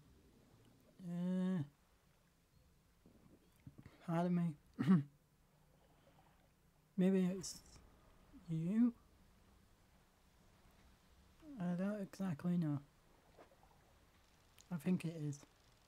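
A young woman speaks calmly in short phrases into a microphone.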